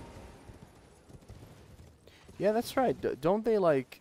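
A horse's hooves clop on rocky ground.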